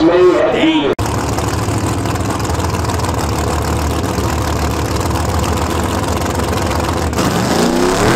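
A car engine idles with a deep, loud rumble.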